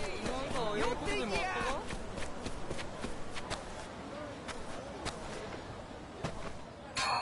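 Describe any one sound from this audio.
Footsteps crunch on packed dirt at a quick walk.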